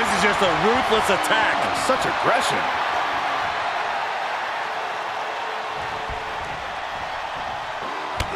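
A large crowd cheers and roars in a big echoing arena.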